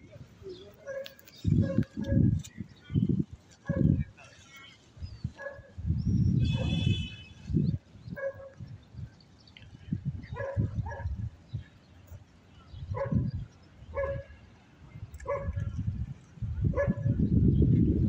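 Pigeons coo now and then.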